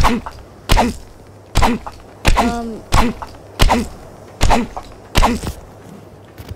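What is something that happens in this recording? A stone pick strikes rock with repeated sharp knocks.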